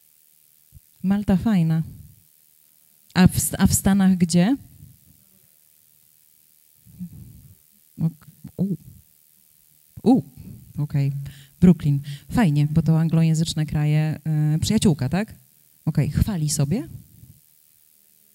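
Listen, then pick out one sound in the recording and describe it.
A woman speaks calmly into a microphone, heard through a loudspeaker.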